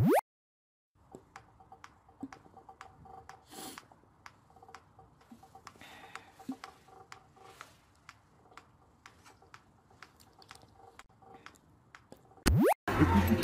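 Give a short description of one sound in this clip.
A teenage boy speaks quietly, close by.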